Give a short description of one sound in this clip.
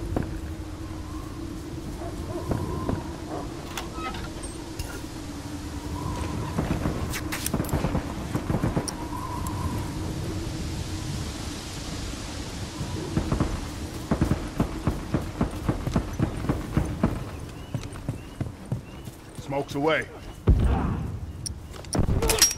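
Footsteps run quickly over ground and wooden boards.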